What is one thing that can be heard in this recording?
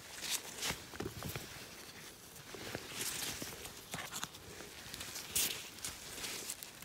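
Rubber gloves rustle and crinkle close by.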